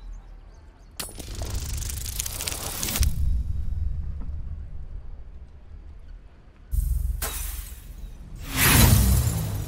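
A die rattles and tumbles as it rolls.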